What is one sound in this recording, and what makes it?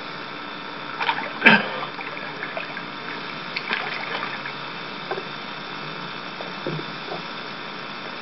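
Water splashes and sloshes as a swimmer kicks off and swims away.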